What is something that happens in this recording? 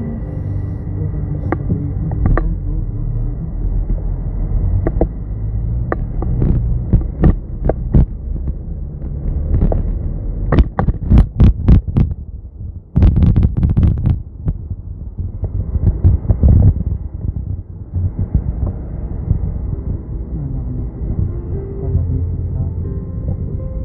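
A car engine hums low and steady from inside a car moving slowly through traffic.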